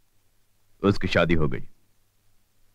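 An elderly man speaks with emotion, close by.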